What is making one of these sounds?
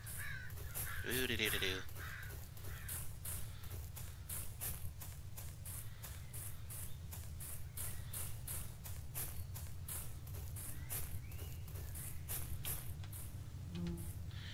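Footsteps swish steadily through grass.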